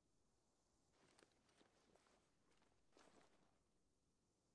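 Footsteps scuff softly on a hard floor.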